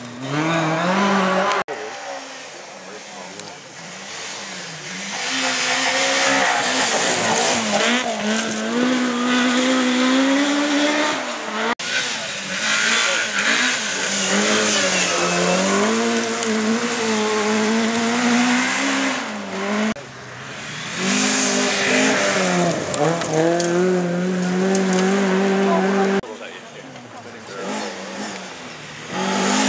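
Rally car engines roar and rev hard as the cars race past.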